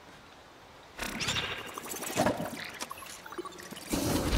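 A shimmering electronic whoosh sounds.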